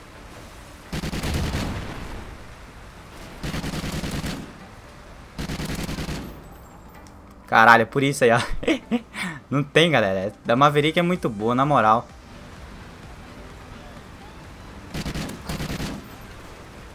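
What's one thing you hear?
A rifle fires in short rapid bursts.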